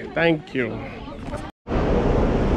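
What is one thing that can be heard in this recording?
A man speaks close by, casually.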